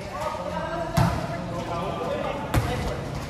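A volleyball is struck with sharp thuds.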